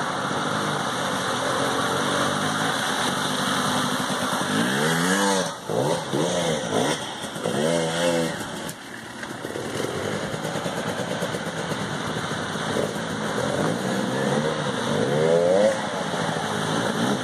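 A dirt bike engine revs loudly as it approaches and passes close by.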